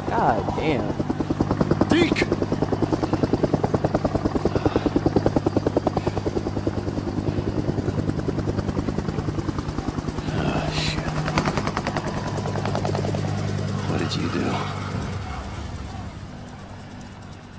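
Helicopter rotor blades thump rapidly close by, then fade into the distance.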